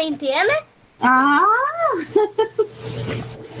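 An elderly woman speaks through an online call.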